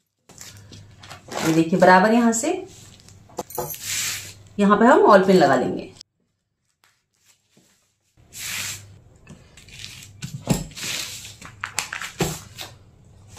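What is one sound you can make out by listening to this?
Paper crinkles and rustles as hands smooth it flat.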